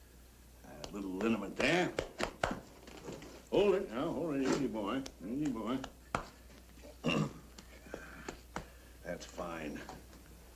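An older man talks with animation nearby.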